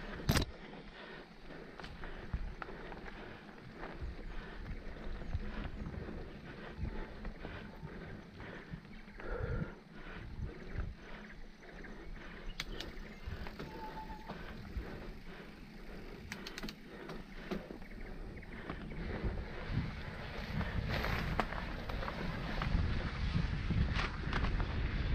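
Bicycle tyres crunch and rattle over a rough dirt trail.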